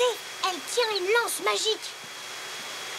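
A young child squeals and chatters in a high voice.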